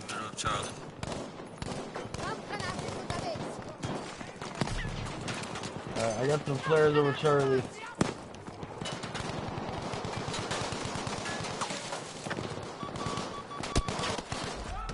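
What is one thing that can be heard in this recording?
Gunshots crack in quick bursts nearby.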